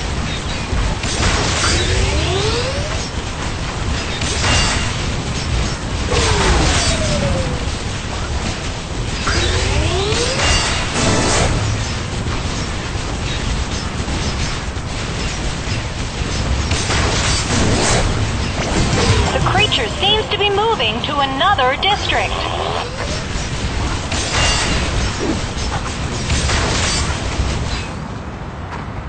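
Explosions boom and crackle again and again.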